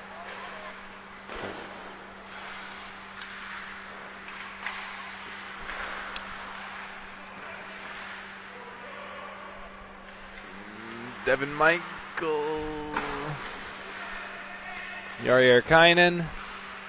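Skate blades scrape and hiss across the ice.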